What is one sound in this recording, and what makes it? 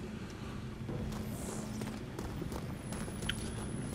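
Footsteps tap on a hard rooftop.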